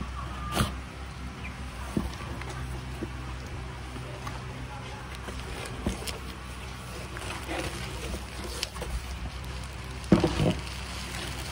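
Cardboard flaps scrape and thump as a box is opened.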